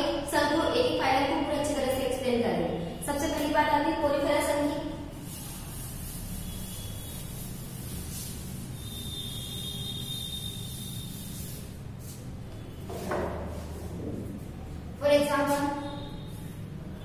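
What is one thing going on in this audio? A young woman speaks calmly nearby, as if teaching.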